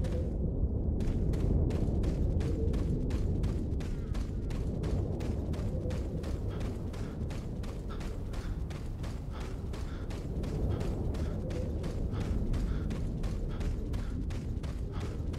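Footsteps crunch steadily on the ground.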